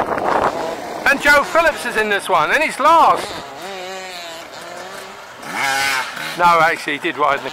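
A motorcycle engine revs up and down loudly, close by.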